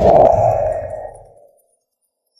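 A young man groans sleepily.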